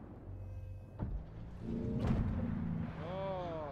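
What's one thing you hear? A shell explodes nearby.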